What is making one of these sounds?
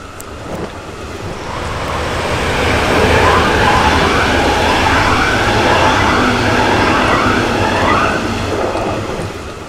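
A train rumbles past on the tracks, growing louder and then fading.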